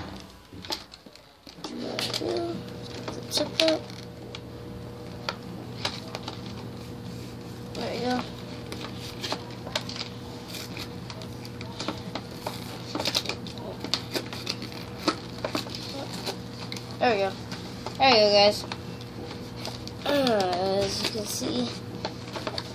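Plastic wrapping crinkles and rustles under a child's hands.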